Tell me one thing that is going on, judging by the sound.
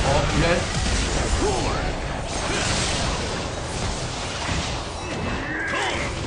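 Video game battle effects clash and crackle.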